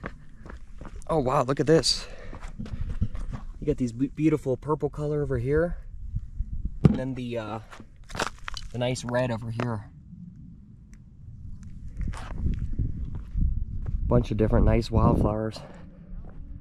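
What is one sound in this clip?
A man speaks calmly and close by, pausing often.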